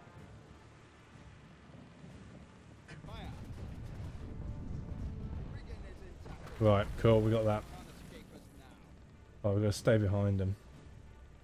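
Water washes against a sailing ship's hull.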